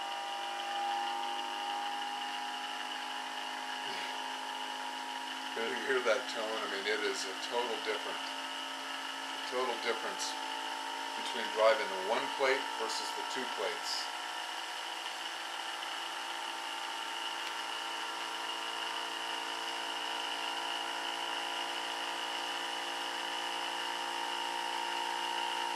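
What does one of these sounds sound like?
A motor hums steadily with a faint electrical whine.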